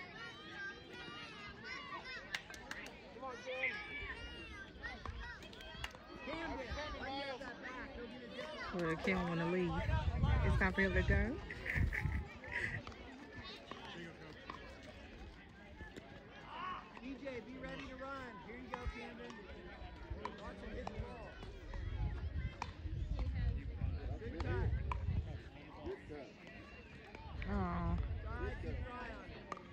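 A crowd of men, women and young children chatter and call out nearby outdoors.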